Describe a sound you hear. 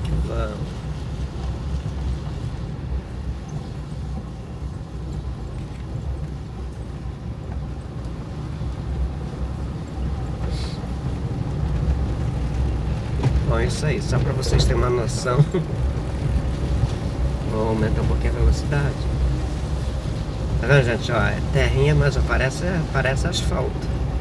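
Tyres rumble over a bumpy dirt road.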